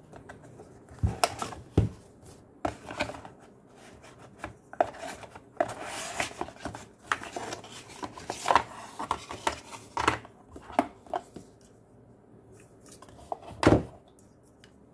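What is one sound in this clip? Cardboard and plastic packaging rustles and scrapes as hands unpack a small device.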